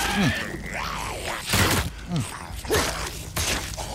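A knife strikes flesh with wet thuds.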